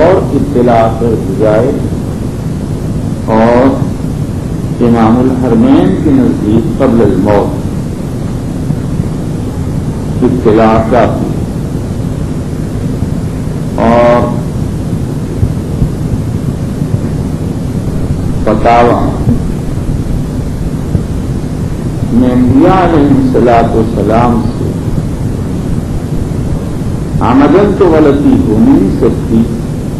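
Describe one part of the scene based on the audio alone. An elderly man speaks slowly with long pauses through a microphone.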